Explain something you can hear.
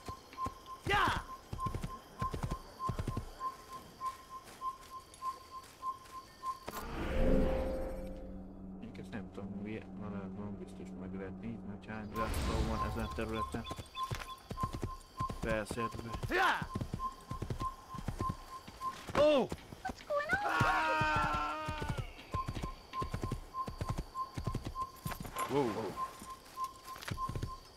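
A horse gallops with steady hoofbeats.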